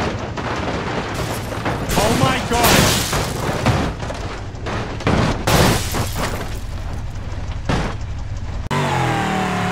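Metal crashes and scrapes against rock.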